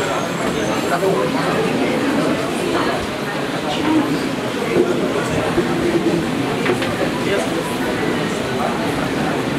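A man speaks firmly and close by, giving instructions.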